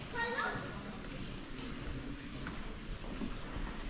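Footsteps walk on a stone floor.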